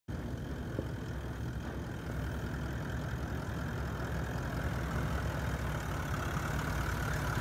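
An off-road vehicle's engine rumbles low and grows louder as it climbs closer.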